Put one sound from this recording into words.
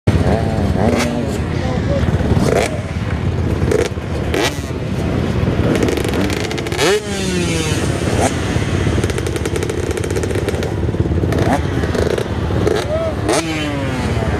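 Motorcycle engines rumble steadily close by outdoors.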